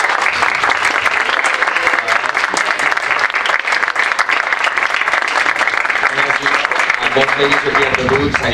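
A crowd applauds and cheers in a large room.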